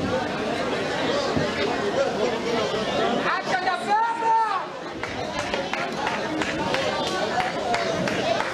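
A crowd of spectators chatters.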